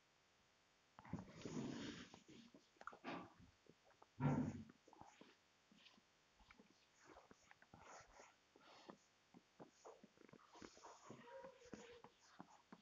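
An eraser wipes softly across a whiteboard.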